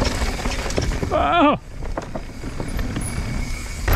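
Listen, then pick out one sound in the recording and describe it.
Bicycle tyres clatter over wooden planks.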